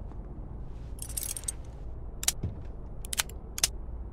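A metal safe door clicks and clanks.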